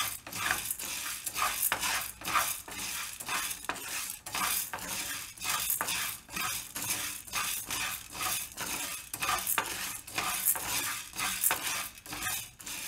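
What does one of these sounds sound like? A wooden spoon scrapes and stirs grains rattling in a metal pan, in rhythmic strokes.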